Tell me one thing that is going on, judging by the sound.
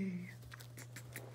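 A puppy gives a short whimper.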